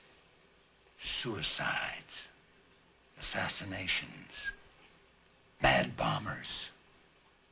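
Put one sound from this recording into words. An elderly man speaks intently in a low voice, close by.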